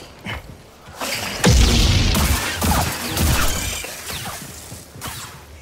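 Lightsabers hum and clash loudly in a fight.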